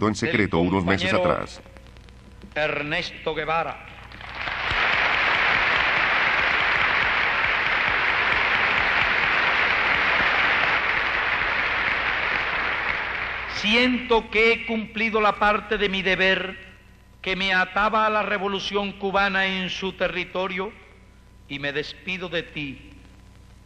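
A man speaks forcefully into a microphone in a large hall.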